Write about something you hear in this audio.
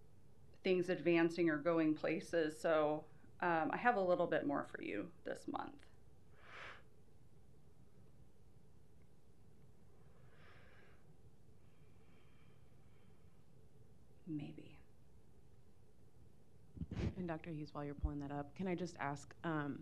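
A woman speaks calmly into a microphone, reading out.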